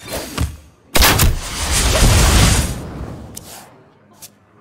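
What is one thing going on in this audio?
A game plays a burst of magical sparkle as a power is used.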